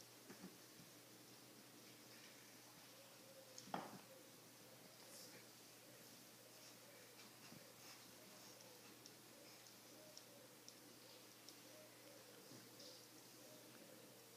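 A puppy chews and gnaws on a plastic toy.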